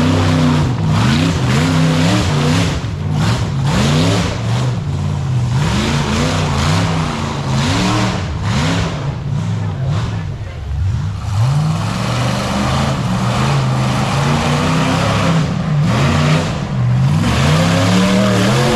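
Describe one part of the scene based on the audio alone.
An off-road vehicle's engine revs hard, again and again, rising and falling in pitch.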